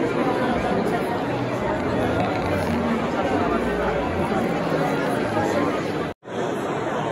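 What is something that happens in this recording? An audience murmurs and chatters in a large echoing hall.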